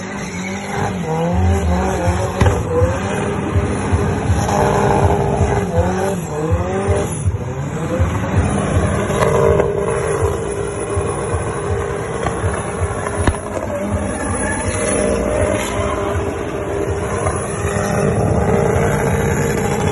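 A car engine revs hard.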